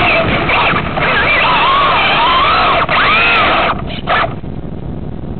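A small electric motor whines, rising and falling in pitch as it revs.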